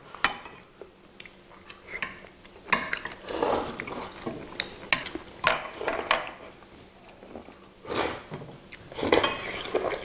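People chew food close to a microphone.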